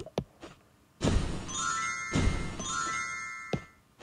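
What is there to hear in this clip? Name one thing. A soft magical puff sounds.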